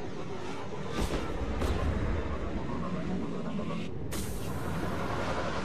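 A spacecraft's engines roar loudly as it hovers and lands.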